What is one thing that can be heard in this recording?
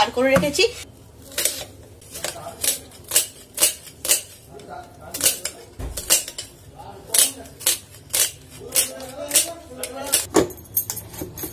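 A knife chops onions on a board with quick taps.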